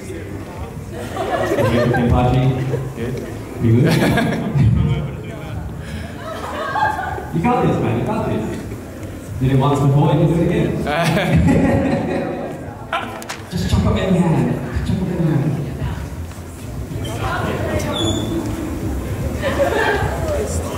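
A young man speaks loudly and with animation in a large echoing room.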